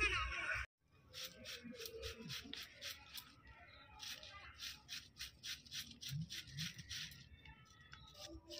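A knife chops cabbage on a board with quick, repeated taps.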